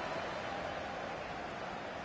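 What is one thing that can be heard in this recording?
A football is struck hard.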